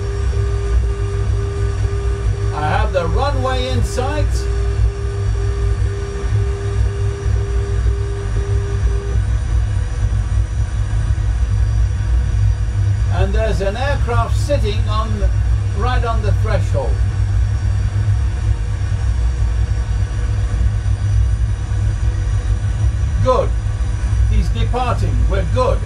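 A steady low engine drone hums throughout.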